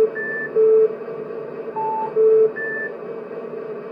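Electronic game beeps sound in short bursts.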